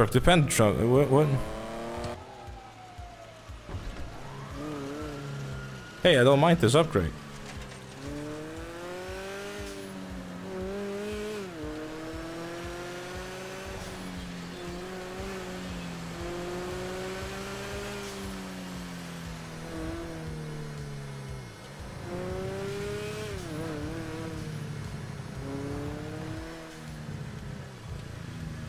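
A sports car engine roars, revving up and dropping as it shifts gears.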